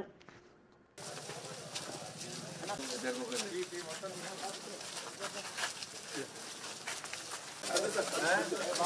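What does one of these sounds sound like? A crowd of men murmurs and chatters outdoors.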